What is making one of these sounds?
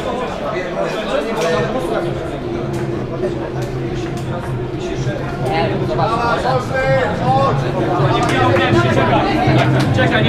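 Men talk and chatter nearby in an echoing corridor.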